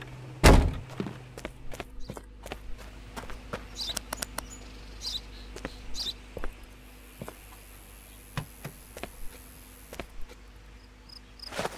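Footsteps crunch on gravel and concrete at a steady walking pace.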